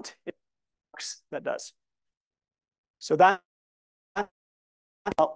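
A man speaks calmly in short bursts, heard through an online call.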